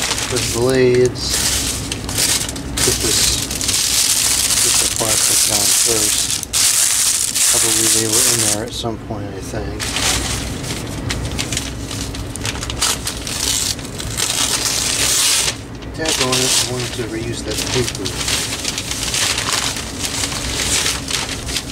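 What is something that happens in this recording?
Plastic packaging crinkles and rustles as hands handle it.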